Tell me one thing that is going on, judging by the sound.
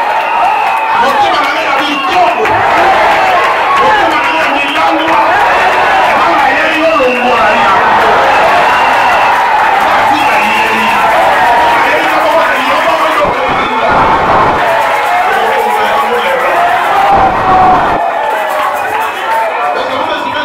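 A crowd sings and cheers loudly in a large echoing hall.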